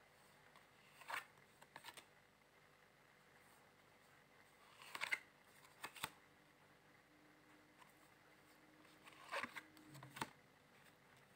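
Playing cards riffle and slap softly as they are shuffled.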